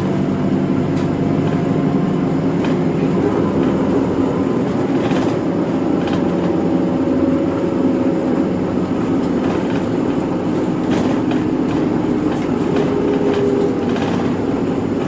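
A car engine hums steadily from inside a moving vehicle.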